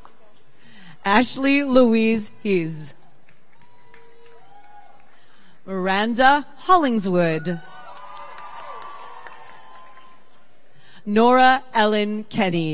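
A woman reads out names over a loudspeaker in a large echoing hall.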